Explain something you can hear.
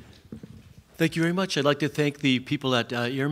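An older man speaks through a microphone from a podium.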